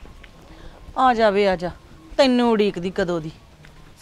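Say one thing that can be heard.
A woman speaks loudly and with feeling, close by.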